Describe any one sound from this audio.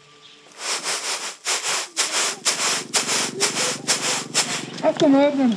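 Grain rattles rhythmically as it is shaken in a winnowing basket.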